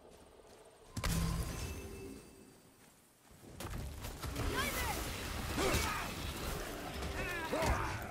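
An axe strikes with heavy thuds.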